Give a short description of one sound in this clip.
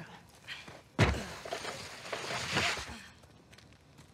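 A man's footsteps crunch on leaves and gravel.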